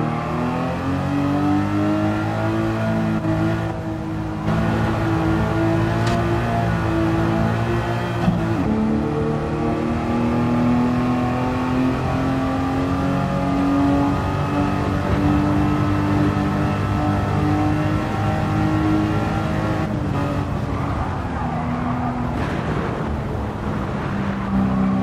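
A racing car engine roars steadily, its pitch rising and falling as gears shift.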